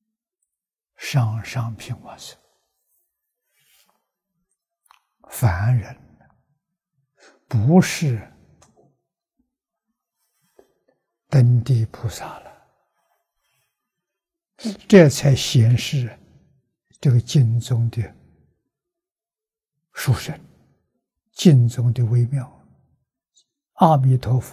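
An elderly man speaks slowly and calmly into a close microphone, in short phrases with pauses.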